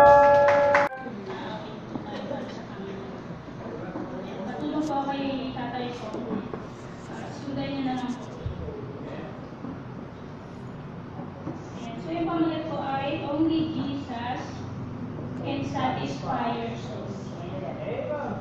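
A woman speaks through a microphone in an echoing hall, calmly reading out.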